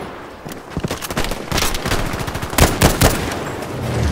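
A rifle fires a loud shot close by.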